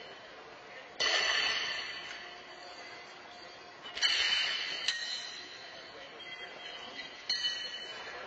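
Horseshoes clang against a steel stake in a large echoing arena.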